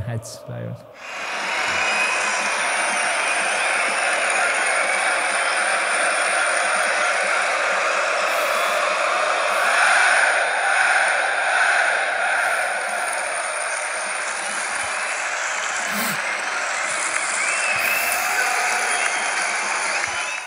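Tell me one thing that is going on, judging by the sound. A large stadium crowd roars and chants loudly.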